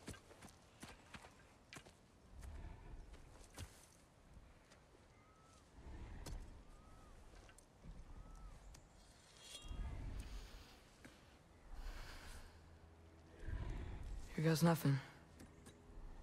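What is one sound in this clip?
A large boar breathes heavily and slowly.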